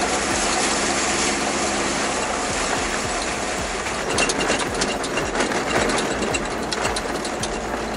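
A vehicle's engine drones steadily as it drives.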